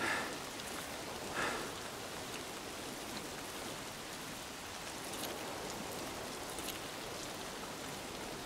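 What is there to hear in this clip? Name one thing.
Footsteps crunch on grass and dirt at a steady walking pace.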